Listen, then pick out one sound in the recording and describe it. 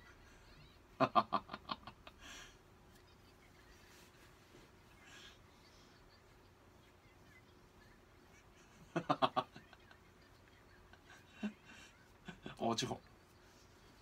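A man laughs in short bursts close to a microphone.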